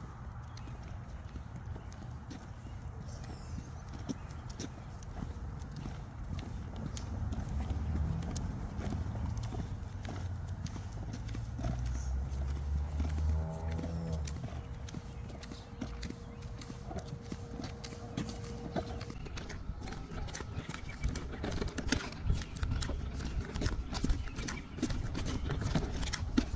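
Footsteps in sandals slap on a sidewalk.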